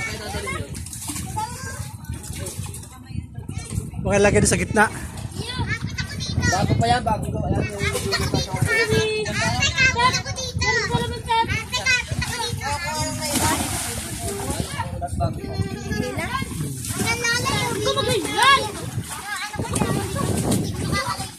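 Young people talk and call out with animation nearby, outdoors.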